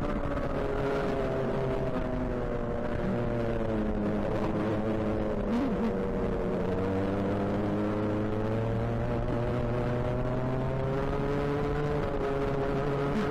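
Other go-kart engines whine nearby.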